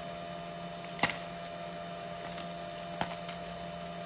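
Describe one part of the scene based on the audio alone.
A metal fork clinks against a frying pan.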